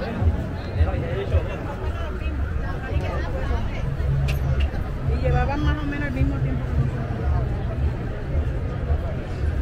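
A crowd of people chatters outdoors nearby.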